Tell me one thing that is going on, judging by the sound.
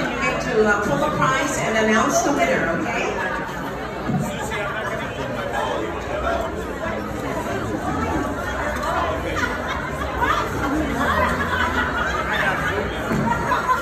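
A crowd of people chatter throughout a large, echoing hall.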